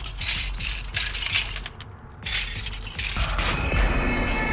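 Objects rattle and clatter as a box is rummaged through.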